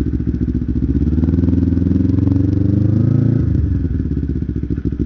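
An engine revs up and then settles.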